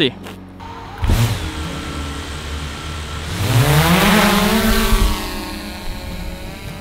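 A drone's motors whir and rise in pitch.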